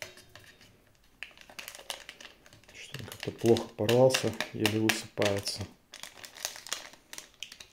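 Powder pours softly from a sachet into a metal cup.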